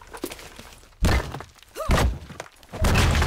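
A pickaxe strikes stone with heavy thuds.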